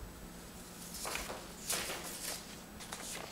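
Paper rustles as a sheet is moved.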